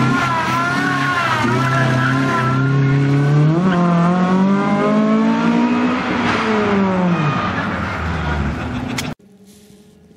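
A Honda Civic rally car's engine revs hard as it accelerates away through the gears.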